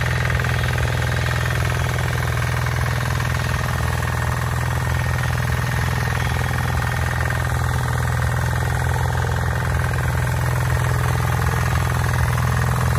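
A small petrol engine of a tiller runs loudly and steadily close by.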